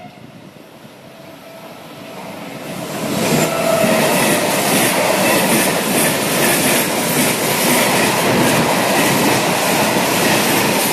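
A freight train rumbles and rattles past loudly, close by.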